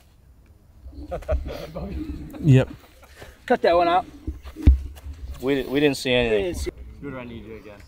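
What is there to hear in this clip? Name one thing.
A young man talks excitedly nearby.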